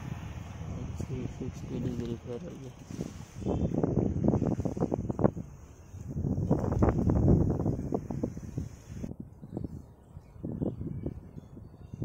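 Strong wind gusts roar outdoors.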